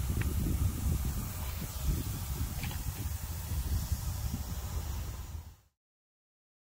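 A lump of wet carbide fizzes and hisses softly.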